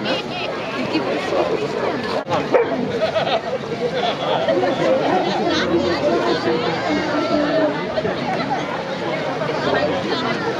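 A pack of hounds whines and yelps excitedly close by.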